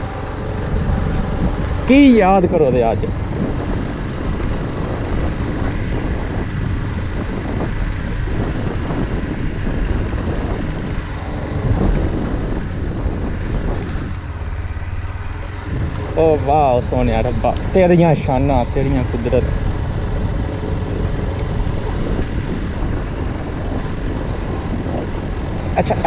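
Wind buffets loudly against the rider.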